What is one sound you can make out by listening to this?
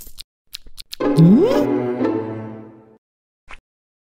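A cartoon jingle with a rising tone plays as the game ends.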